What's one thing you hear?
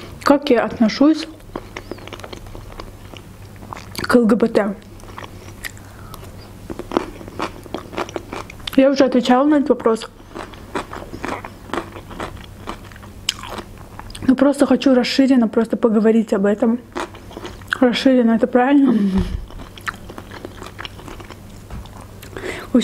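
A young woman chews food with wet, crunchy mouth sounds close to a microphone.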